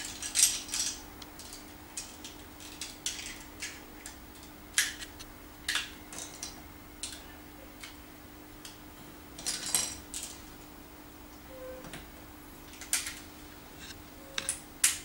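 Plastic building blocks click and clatter as they are snapped together and pulled apart.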